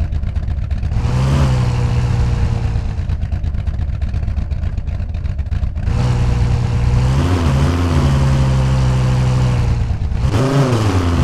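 A sports car engine revs and hums as the car accelerates.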